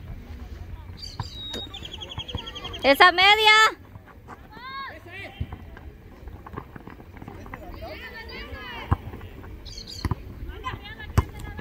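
Young women shout and call out loudly outdoors.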